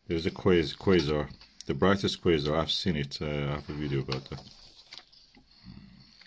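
A stiff paper page rustles as it is turned.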